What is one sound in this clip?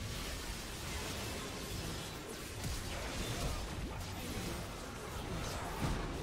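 Magic blasts and clashing hits crackle and whoosh in a fight.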